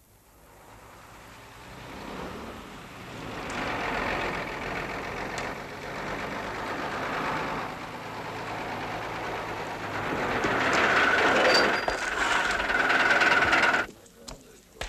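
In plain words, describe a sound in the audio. A bus engine rumbles as a bus drives slowly past.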